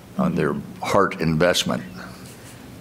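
A person speaks briefly through a microphone in a room with some echo.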